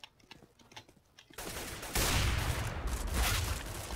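A sniper rifle fires a single loud, booming shot.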